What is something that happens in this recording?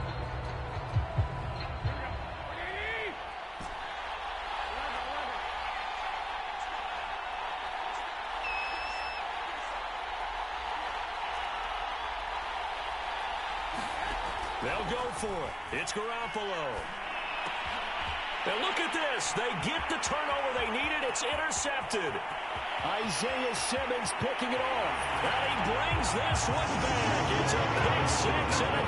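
A large stadium crowd roars steadily, growing louder toward the end.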